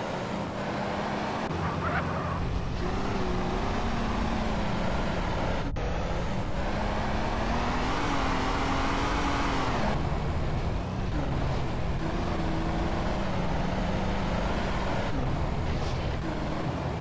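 A car engine hums steadily, rising and falling in pitch.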